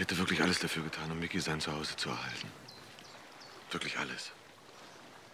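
A man speaks quietly and earnestly close by.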